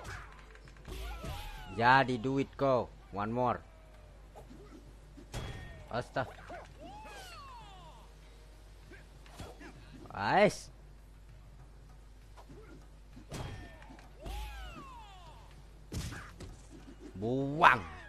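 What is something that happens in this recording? Punches and kicks land with sharp thuds.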